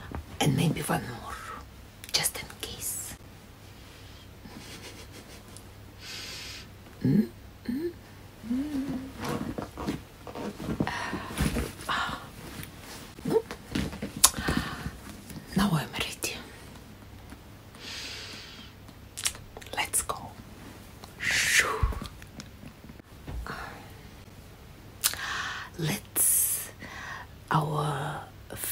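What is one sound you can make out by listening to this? A woman talks softly and playfully close by.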